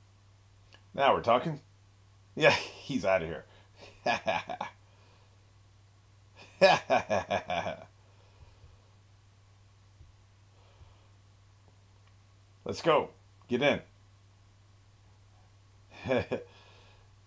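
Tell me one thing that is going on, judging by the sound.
An older man speaks in short, animated bursts close to a microphone.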